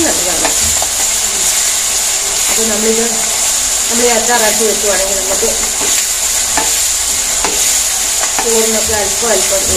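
Garlic sizzles steadily in hot oil.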